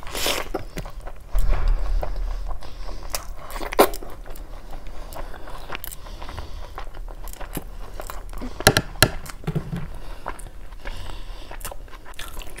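A young woman chews food wetly and loudly, close to a microphone.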